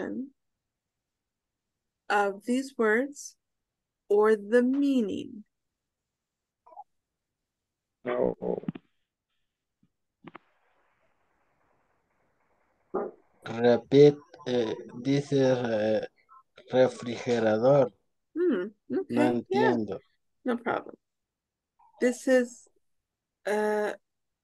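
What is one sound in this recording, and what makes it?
A young woman speaks clearly over an online call, pausing between phrases.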